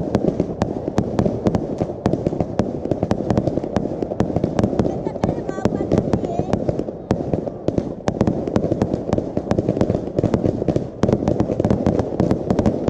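Fireworks crackle and bang rapidly outdoors.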